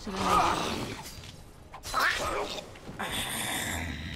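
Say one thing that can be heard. Swords clash in a fight.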